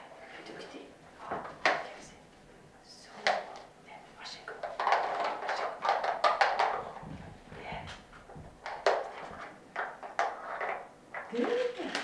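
Plastic pieces clatter and click as a dog noses at a toy.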